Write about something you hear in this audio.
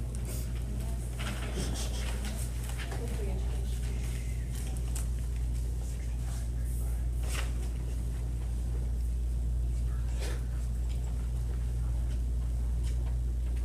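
Footsteps cross the room quietly.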